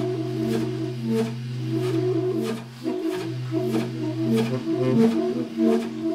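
Two saxophones play a jazz melody together.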